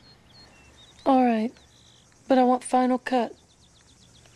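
A woman speaks quietly, close by.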